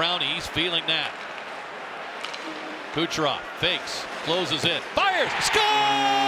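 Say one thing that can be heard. Hockey sticks click and clatter against a puck on ice.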